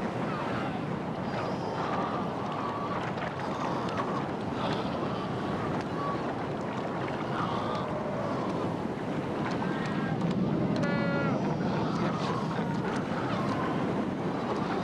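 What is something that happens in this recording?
Seals bark and call over the roar of the waves.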